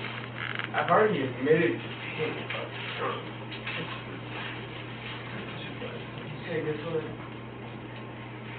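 Men speak in a small room, close to a body-worn microphone.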